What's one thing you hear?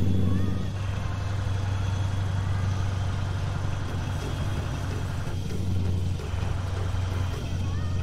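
A truck engine drones steadily at low pitch.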